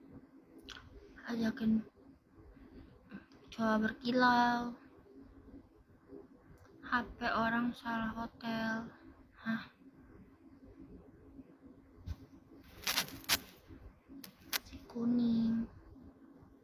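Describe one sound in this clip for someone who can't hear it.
A young woman speaks softly and casually close to a phone microphone, in short bursts.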